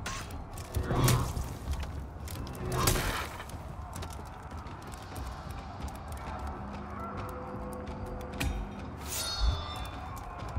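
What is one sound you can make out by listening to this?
Metal weapons clash in sharp strikes.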